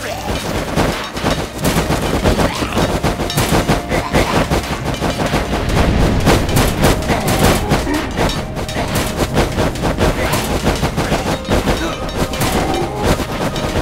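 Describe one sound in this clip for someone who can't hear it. Many swords clash and clang rapidly in a battle.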